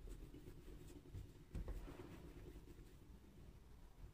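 Soft dough rolls quietly against a wooden board.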